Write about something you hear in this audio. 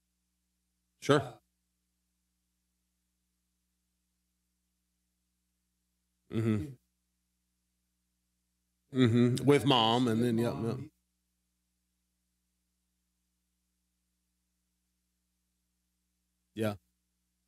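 An older man speaks calmly into a microphone, in short bursts with long silences.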